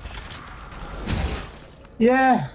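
A deep magical whoosh swells as a beam of light bursts up.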